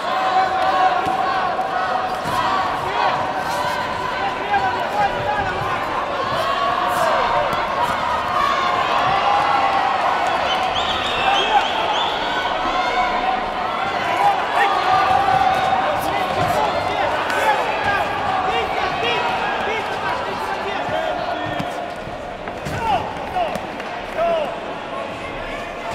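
A crowd shouts and cheers throughout a large echoing hall.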